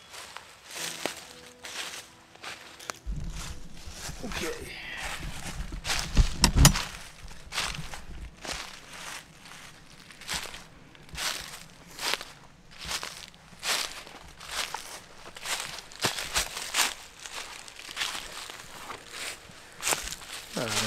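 Dry leaves crunch underfoot with steady footsteps.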